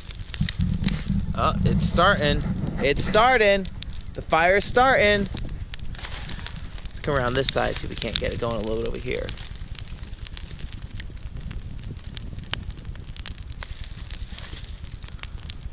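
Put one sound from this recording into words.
A fire crackles and pops.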